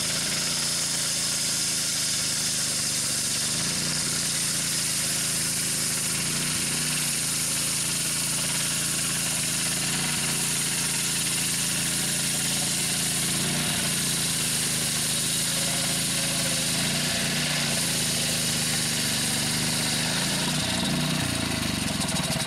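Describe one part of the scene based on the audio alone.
A petrol engine roars loudly and steadily, close by.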